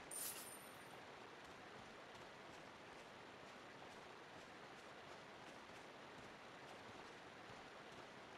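Footsteps crunch steadily through dry leaves.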